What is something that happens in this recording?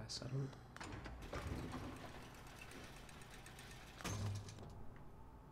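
A metal lift rumbles and clanks as it moves.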